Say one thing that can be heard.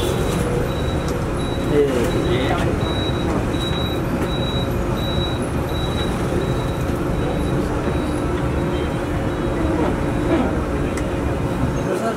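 A man talks on a phone nearby.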